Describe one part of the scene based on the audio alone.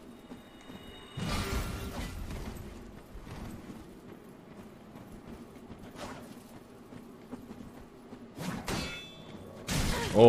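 Swords clash and clang.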